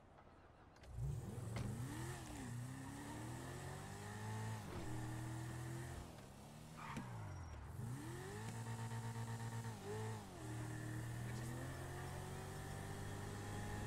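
A car engine revs loudly and changes pitch as it speeds up and slows down.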